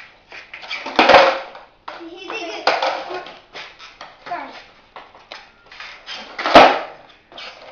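A skateboard clatters and slaps onto a hard floor.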